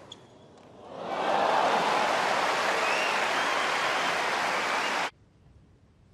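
A large crowd cheers and applauds loudly, then stops abruptly.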